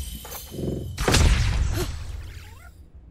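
A magical blast bursts loudly and crackles away.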